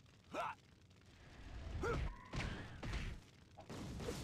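Fiery blasts whoosh and burst.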